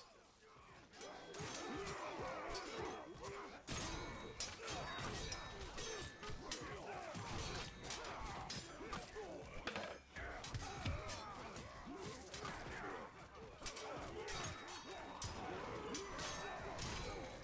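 Swords clash and strike in a game battle.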